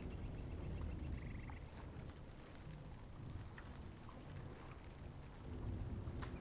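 Water splashes softly as a swimmer paddles through it.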